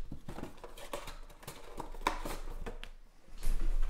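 Foil card packs rustle and crinkle as hands handle them.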